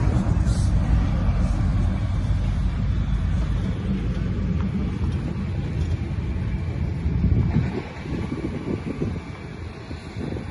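Wind blows hard outdoors, buffeting with a low rumble.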